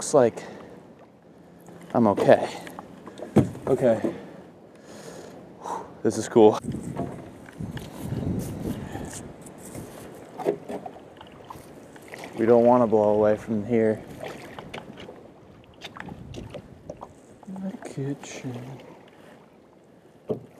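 A wooden branch splashes and paddles through water.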